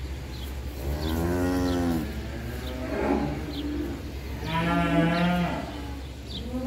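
A cow moos loudly nearby.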